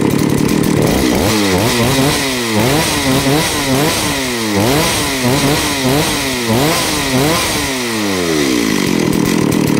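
A chainsaw engine revs up and down again and again.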